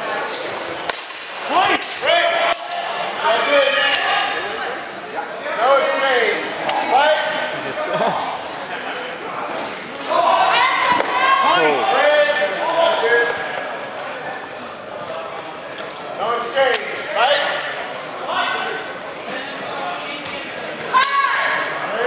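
Steel blades clash sharply in a large echoing hall.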